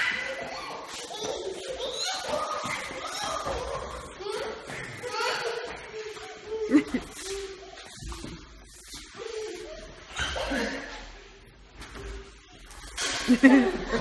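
Feet shuffle and stamp on a hard floor.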